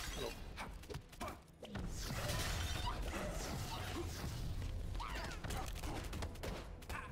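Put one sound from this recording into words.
Game weapons fire and strike in quick bursts.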